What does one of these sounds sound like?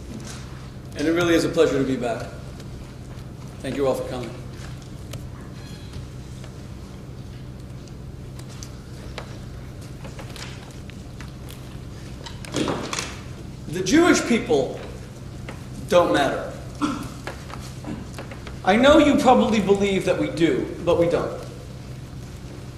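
A man speaks slowly and expressively through a microphone, with long pauses.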